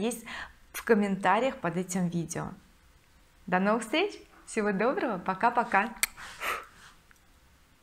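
A woman speaks warmly and closely into a microphone.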